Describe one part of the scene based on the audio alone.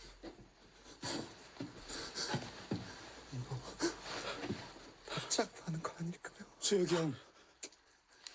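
A man pleads anxiously and with rising emotion.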